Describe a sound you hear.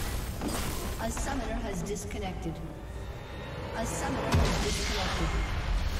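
Spell effects crackle and boom in a fight.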